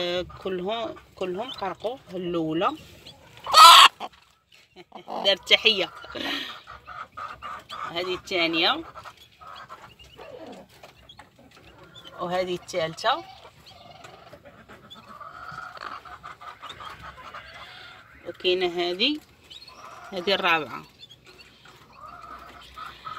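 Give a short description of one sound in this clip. A brooding hen clucks and growls in short, rising calls close by.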